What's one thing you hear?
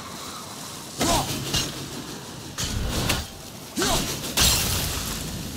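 An axe strikes something with heavy, ringing thuds.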